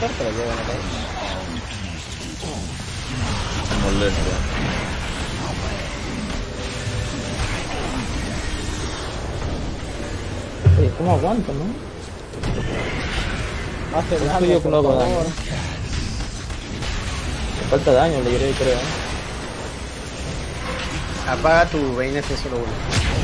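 Game spells and fighting effects crackle and boom.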